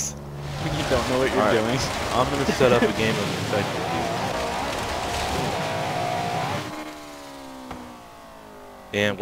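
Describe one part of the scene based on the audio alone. A car engine roars at high revs.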